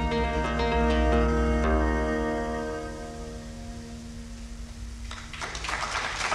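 A bowed fiddle plays a melody.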